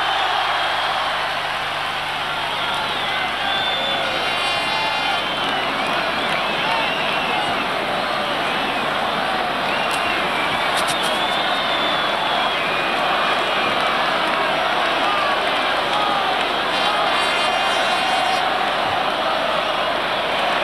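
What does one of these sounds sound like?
People in a large crowd whistle shrilly.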